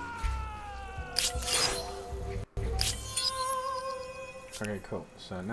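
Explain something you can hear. A bright chime rings out with a rising flourish.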